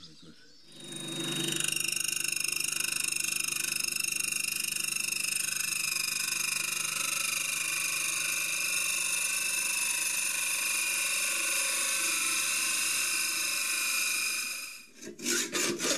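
A lathe motor runs with a steady high whine.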